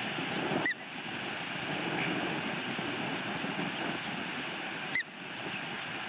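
An osprey gives short, high chirps.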